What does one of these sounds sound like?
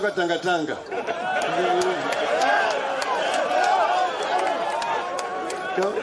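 A crowd cheers and shouts nearby.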